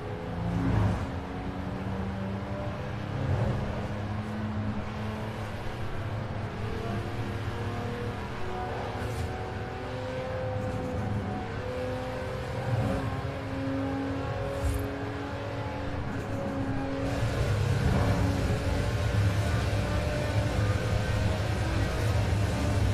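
A sports car engine roars steadily at high speed, its pitch rising and falling with gear changes.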